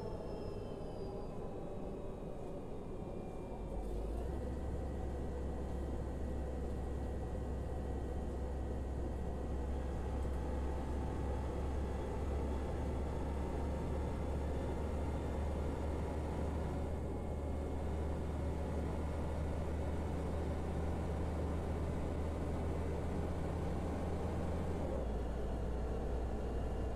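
A bus engine hums steadily as the bus drives along, growing louder as it picks up speed.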